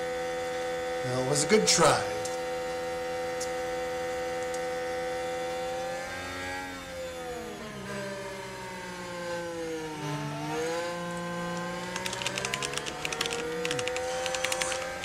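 A racing car engine whines at high revs, dropping in pitch as it slows and then climbing again.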